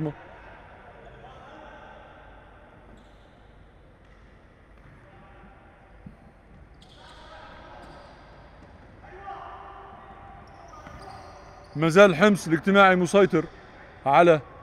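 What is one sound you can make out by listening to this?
Voices murmur faintly in the background of a large hall.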